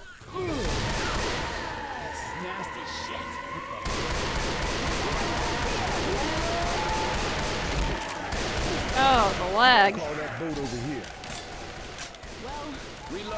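Zombies groan and snarl nearby.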